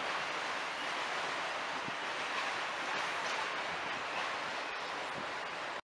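Wind rustles through leafy trees outdoors.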